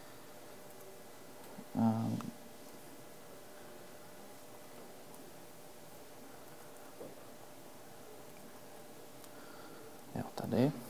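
Laptop keys click as a man types.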